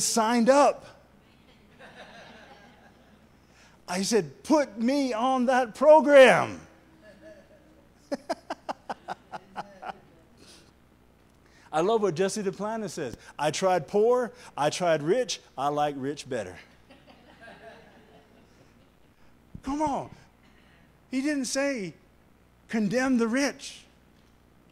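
A man preaches with animation into a microphone, heard through loudspeakers in an echoing hall.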